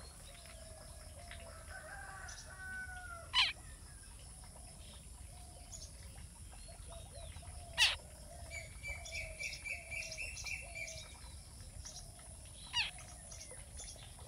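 A young bird chirps sharply from the grass.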